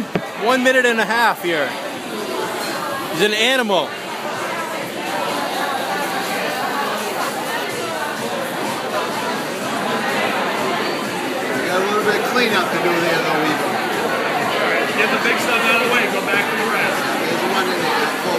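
A crowd of diners chatters in the background.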